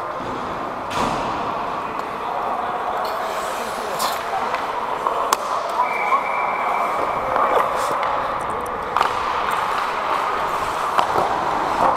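Hockey sticks clack against the ice and the puck in a large echoing rink.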